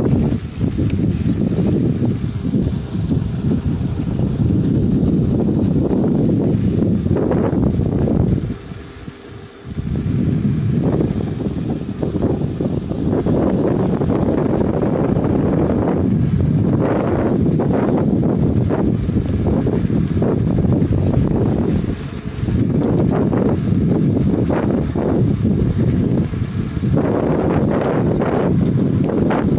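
Wind buffets the microphone outdoors, roaring low and steadily with brief lulls.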